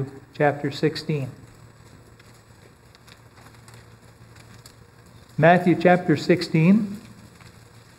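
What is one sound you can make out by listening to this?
An older man speaks calmly through a microphone, with long pauses.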